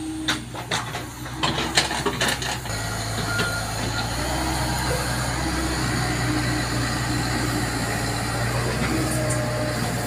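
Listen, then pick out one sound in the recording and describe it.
An excavator engine rumbles steadily close by.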